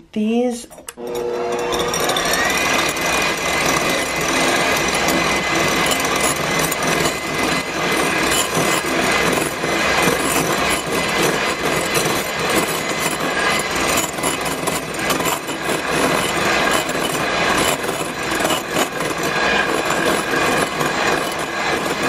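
An electric hand mixer whirs steadily as its beaters whip liquid.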